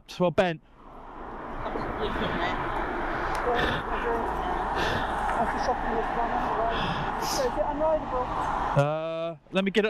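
Road traffic rumbles steadily nearby.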